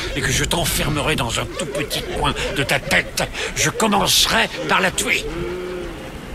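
A man speaks in a raspy, mocking voice.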